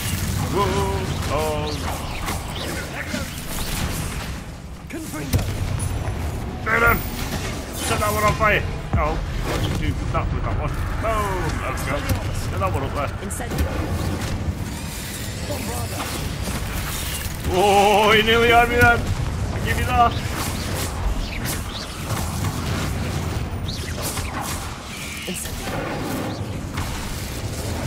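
Spells crackle and burst in a fight.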